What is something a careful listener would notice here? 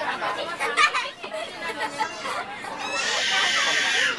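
A young girl laughs loudly close by.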